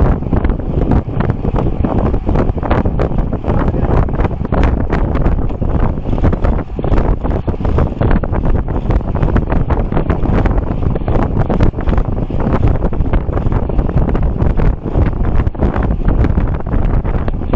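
Wind buffets a microphone loudly on a fast bicycle ride.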